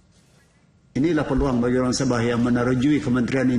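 A middle-aged man speaks firmly into a microphone.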